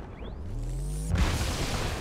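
An electric charge crackles and zaps loudly.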